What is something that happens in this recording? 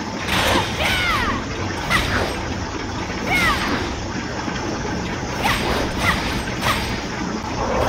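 Swords clash and slash with sharp metallic swishes.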